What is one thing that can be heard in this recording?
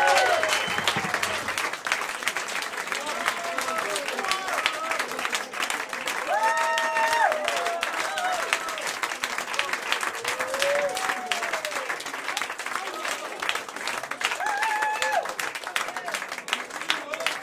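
A large crowd claps loudly and steadily.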